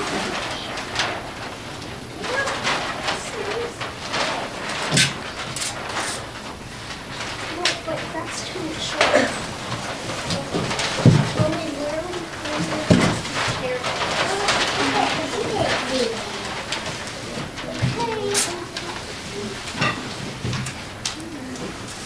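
Children chatter and call out in a room.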